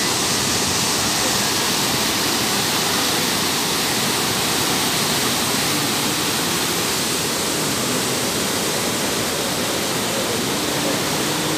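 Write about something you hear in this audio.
Floodwater roars and rushes over rock.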